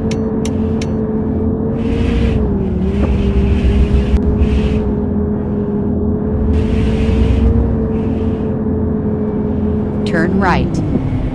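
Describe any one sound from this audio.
Tyres roll on a road with a rushing noise.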